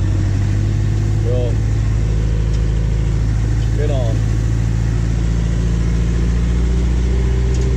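A hay rake whirs and rattles behind the tractor.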